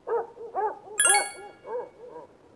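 A short electronic chime rings once.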